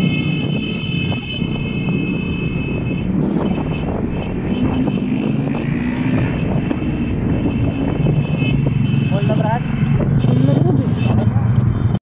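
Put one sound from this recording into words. A scooter engine hums steadily up close while riding.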